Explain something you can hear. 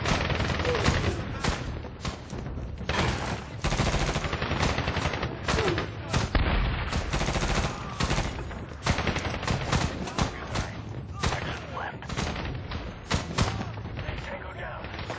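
Rifle shots fire in quick bursts, close by.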